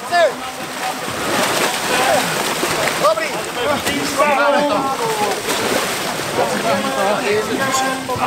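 Paddles splash and churn through water.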